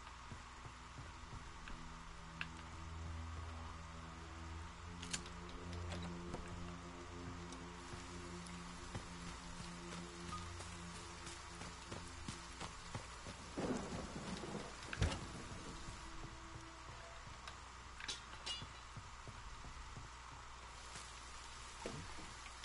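Footsteps patter quickly on wooden floors and ground.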